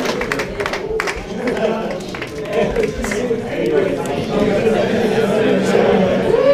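A crowd of young people talks and chatters loudly in a room.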